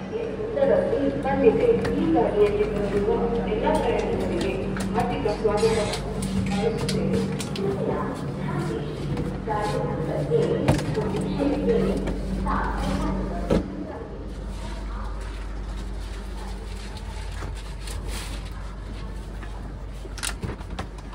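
A train's engine hums steadily.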